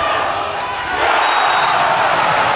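A crowd in a large echoing hall roars and applauds loudly.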